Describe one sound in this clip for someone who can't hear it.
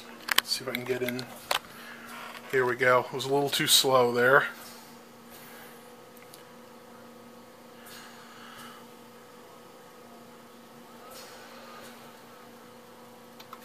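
A computer monitor hums steadily.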